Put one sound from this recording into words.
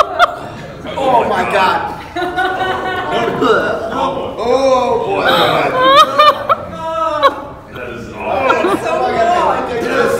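A man coughs and splutters after a drink.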